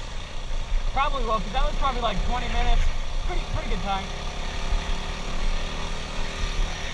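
A dirt bike engine rumbles steadily.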